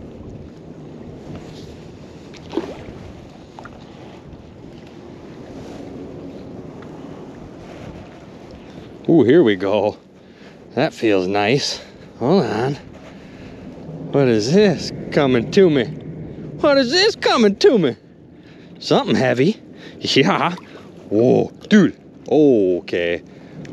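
Small waves lap gently at the water's edge.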